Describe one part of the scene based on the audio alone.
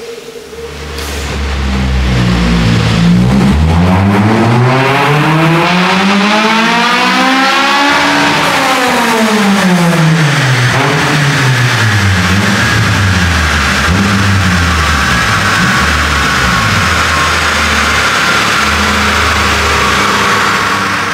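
Rollers whine under a car's spinning wheels.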